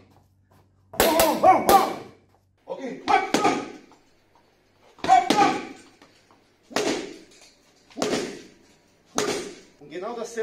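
A wooden stick thuds sharply against a punching bag.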